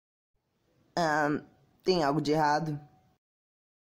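A boy speaks in a shaky voice.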